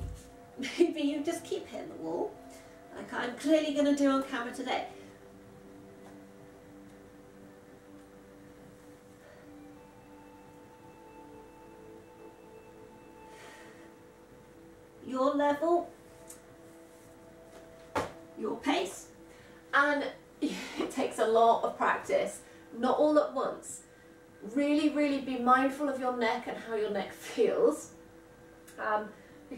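A young woman talks calmly close by, with pauses.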